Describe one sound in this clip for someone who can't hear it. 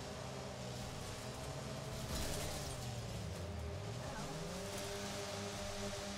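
Cars crash together with crunching metal.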